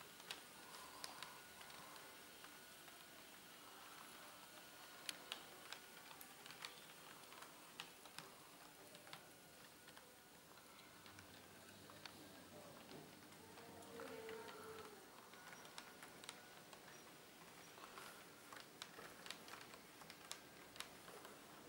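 A model train rolls past, its wheels clicking over rail joints.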